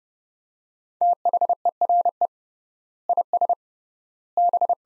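Morse code beeps in short and long steady tones.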